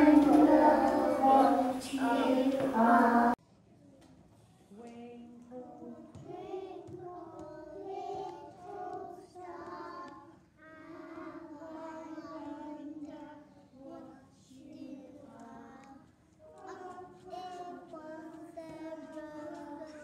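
A group of young children sing a song together.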